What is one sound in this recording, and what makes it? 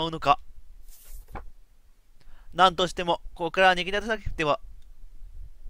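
A young man speaks brightly in a high voice, close to a microphone.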